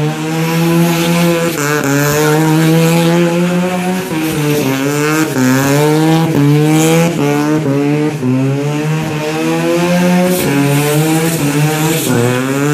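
Tyres screech and squeal as a car spins on the ground.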